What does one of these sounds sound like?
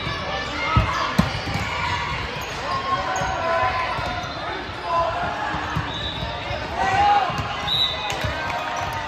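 Young players call out to each other in a large echoing hall.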